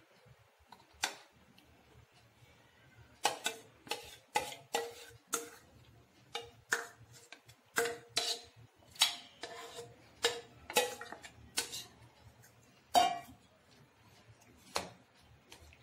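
A spatula scrapes and taps against a metal bowl.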